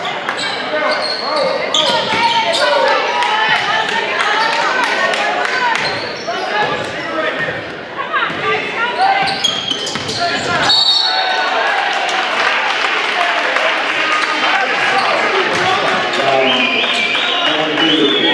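A basketball bounces on the court.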